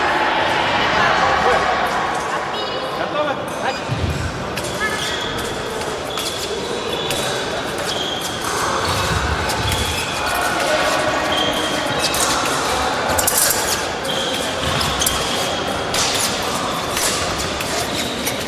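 A crowd murmurs in the background of a large echoing hall.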